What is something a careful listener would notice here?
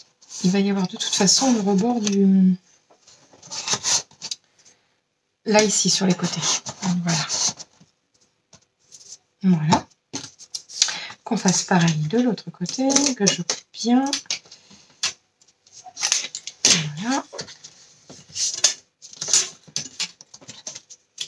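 Cardboard scrapes and taps as it is handled.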